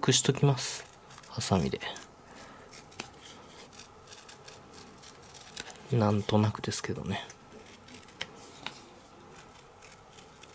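Scissors snip through stiff paper with crisp cuts.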